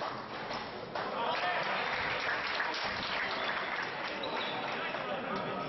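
A crowd cheers and claps.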